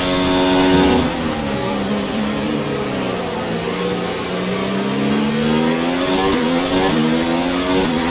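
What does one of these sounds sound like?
A racing car engine drops in pitch while braking into a corner, then climbs again.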